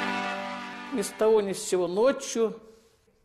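An elderly woman speaks with animation, close to a microphone.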